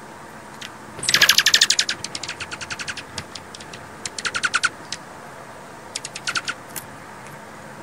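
Small birds chirp and trill in quick bursts nearby.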